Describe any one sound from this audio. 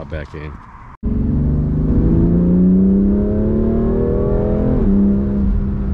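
A car engine roars loudly, rising in pitch as the car accelerates hard.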